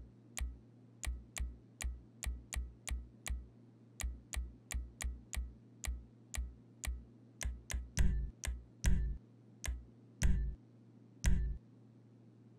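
Short game menu clicks tick in quick succession.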